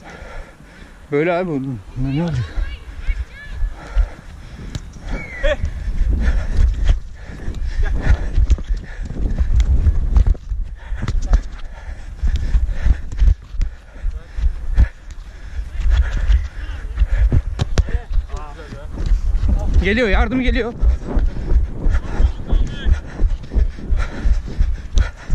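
A player's footsteps thud on artificial turf while running.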